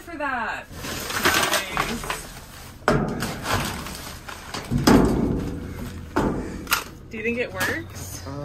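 Plastic bags and wrappers rustle as they are handled.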